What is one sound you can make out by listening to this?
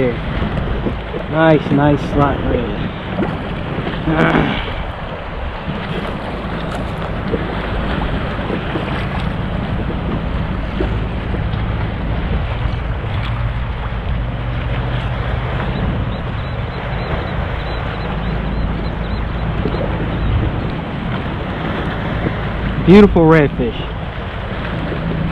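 Wind blows over open water.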